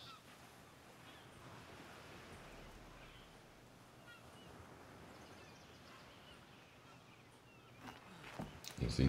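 Small waves lap softly against a shore.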